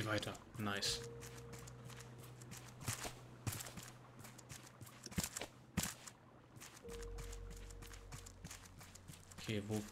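Footsteps knock on wooden planks.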